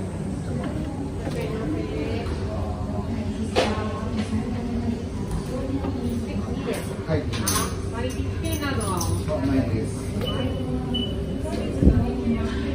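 Men and women talk and murmur indistinctly in a large echoing room.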